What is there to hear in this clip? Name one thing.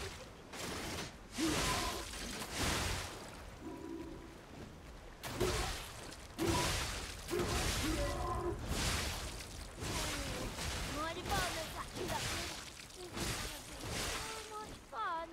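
Heavy blades swing and strike hard in quick bursts.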